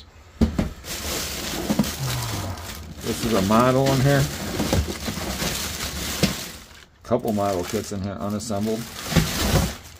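A plastic bag rustles and crinkles as it is handled.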